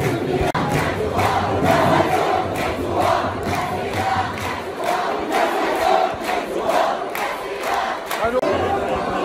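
Many people clap in rhythm.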